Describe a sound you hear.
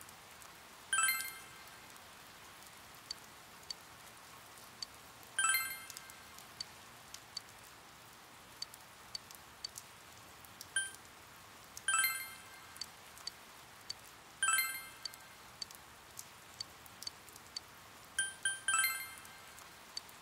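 Short bright electronic chimes ring out now and then.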